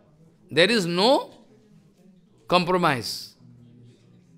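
An elderly man speaks calmly into a microphone close by.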